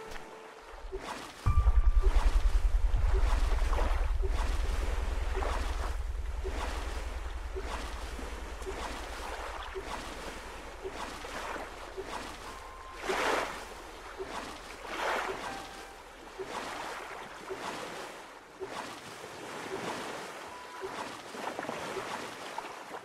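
A paddle splashes and swishes through water in slow, even strokes.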